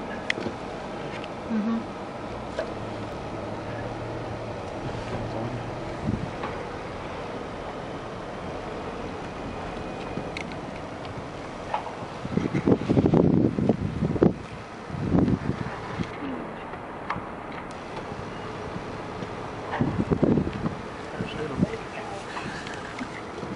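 Cows tear and munch grass close by.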